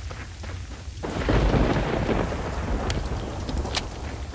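A handgun fires several sharp shots.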